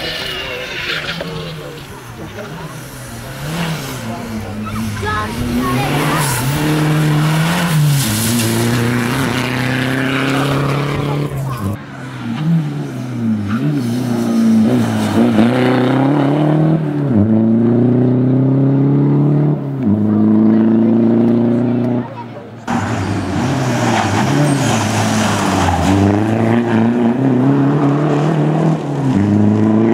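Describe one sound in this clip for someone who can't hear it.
A rally car engine revs hard and shifts through the gears as it passes close by.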